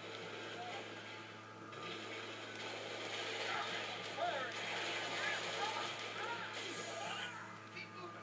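Gunfire crackles from a loudspeaker.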